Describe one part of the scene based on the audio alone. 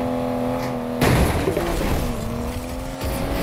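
A car crashes into roadside objects with a loud thud.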